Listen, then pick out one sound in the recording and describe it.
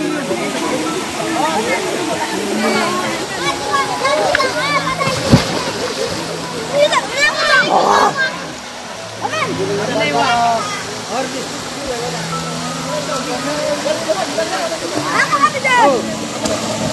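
A small waterfall splashes steadily onto rocks and water.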